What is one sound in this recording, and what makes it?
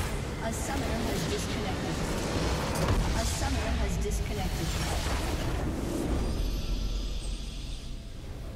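A large explosion booms and crackles.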